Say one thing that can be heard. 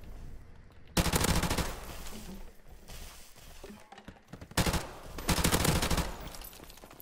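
A rifle fires loud rapid automatic bursts.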